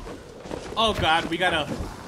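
Blows land in a close fight.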